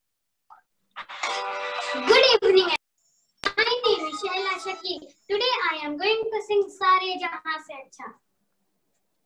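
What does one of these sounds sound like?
A young girl sings solo.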